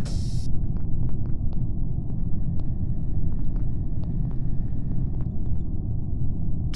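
Quick light footsteps patter across a hard floor.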